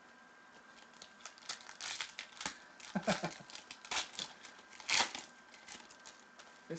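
A foil wrapper crinkles and tears as hands open a pack.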